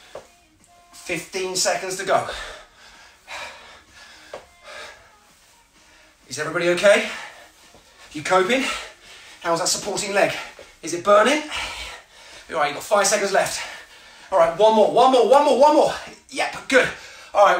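A man speaks loudly and with energy close by, as if coaching.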